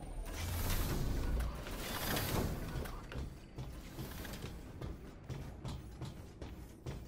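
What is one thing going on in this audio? Heavy metal footsteps clank on a metal floor.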